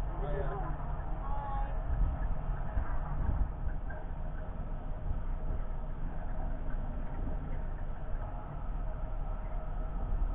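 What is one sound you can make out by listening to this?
A boat engine hums with a low, steady rumble.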